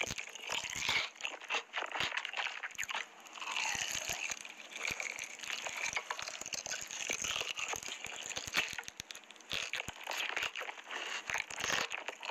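A woman chews and crunches on crispy food close to a microphone.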